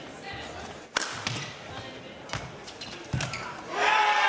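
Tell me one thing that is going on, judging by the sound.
A racket sharply strikes a shuttlecock in a large echoing hall.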